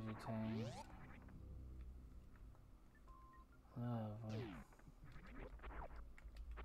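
Retro video game sound effects chirp and sweep up and down in pitch.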